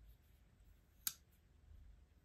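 A metal folding knife clicks sharply once.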